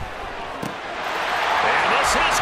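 A large crowd roars and cheers, growing louder.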